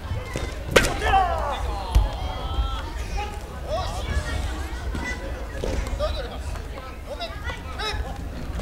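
Young men shout loudly, echoing in a large hall.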